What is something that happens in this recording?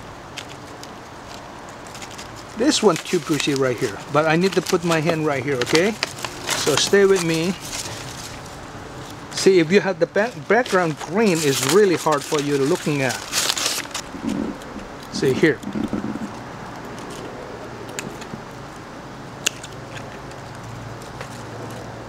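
Small scissors snip through thin twigs.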